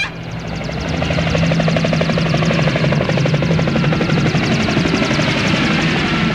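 A helicopter's rotor chops loudly overhead.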